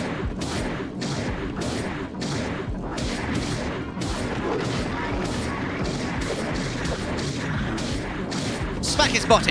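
Sword blows clang against a monster in rapid bursts.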